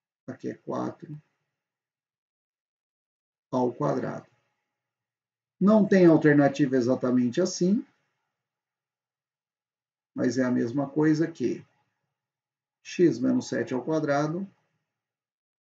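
A young man speaks calmly and clearly into a close microphone, in short bursts with pauses.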